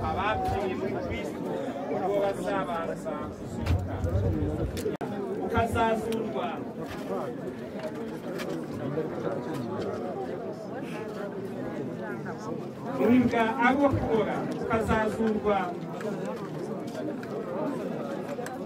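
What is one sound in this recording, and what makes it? Several voices in a crowd sing together.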